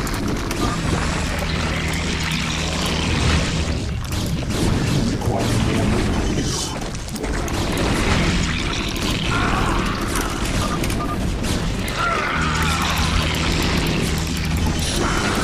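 Weapons fire and blasts crackle in a fast game battle.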